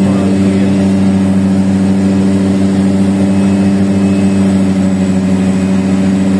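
A propeller engine drones loudly and steadily from close by inside the cabin.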